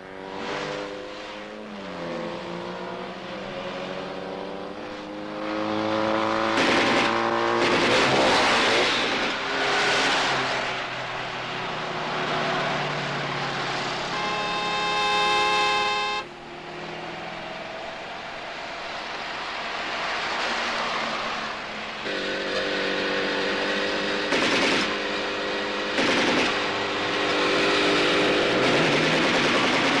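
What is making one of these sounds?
A car engine hums as the car drives along a road.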